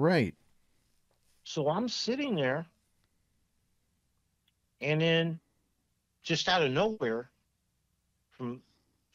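A middle-aged man speaks calmly and thoughtfully into a close microphone, pausing between phrases.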